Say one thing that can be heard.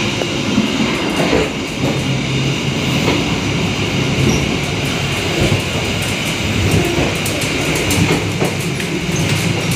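A train rumbles steadily, heard from inside a carriage.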